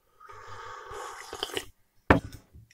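A man slurps a drink from a cup.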